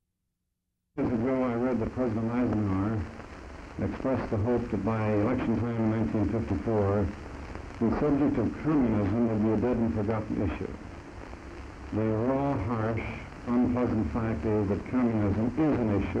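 A middle-aged man speaks deliberately into a microphone.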